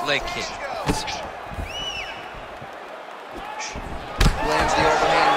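A punch lands with a sharp thud.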